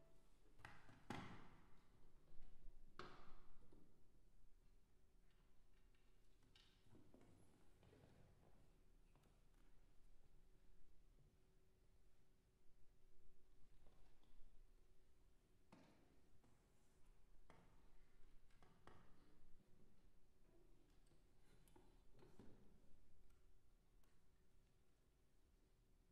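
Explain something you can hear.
A cello plays softly in a large echoing hall.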